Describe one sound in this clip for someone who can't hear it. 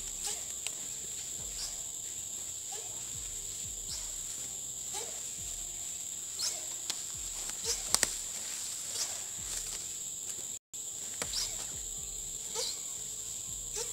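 Footsteps crunch through dry leaves and grass.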